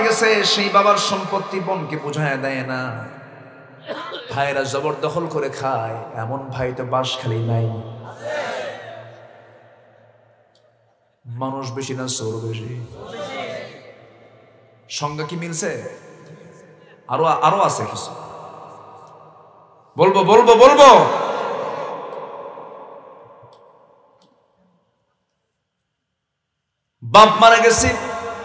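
A man preaches with animation into a microphone over loudspeakers, his voice echoing after each phrase.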